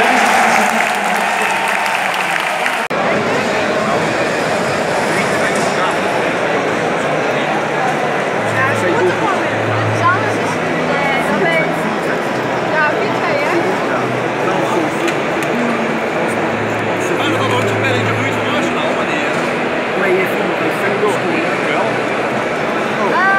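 A large stadium crowd roars and chatters all around, echoing through the open stands.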